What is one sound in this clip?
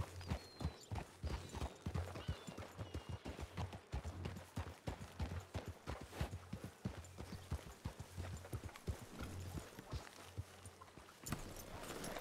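Horse hooves clop steadily on dirt and grass.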